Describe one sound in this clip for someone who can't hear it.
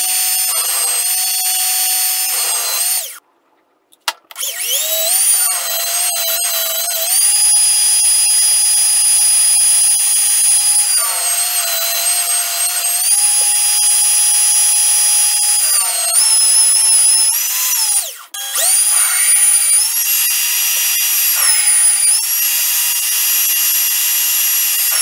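A lathe motor whines steadily, cutting out briefly and winding back up.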